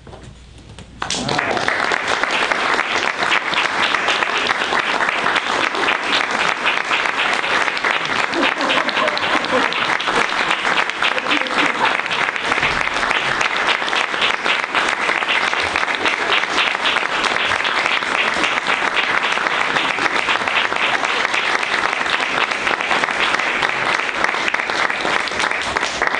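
A small crowd claps and applauds steadily.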